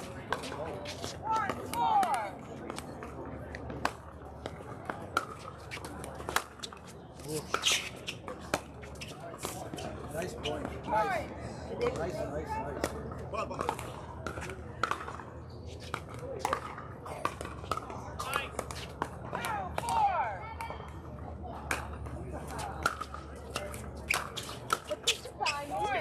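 Shoes squeak on a hard court.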